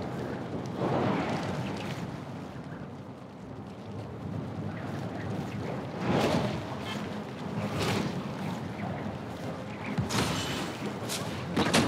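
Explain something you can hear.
Wind rushes past in swooping gusts.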